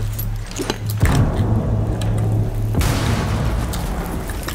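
A gun fires loud shots close by.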